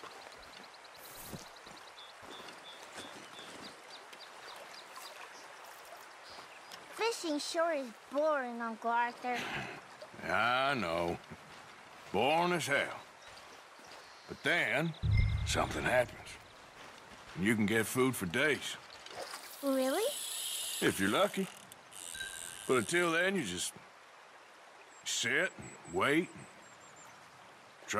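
A river flows and babbles nearby.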